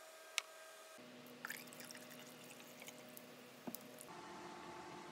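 Liquid pours and fizzes into a glass.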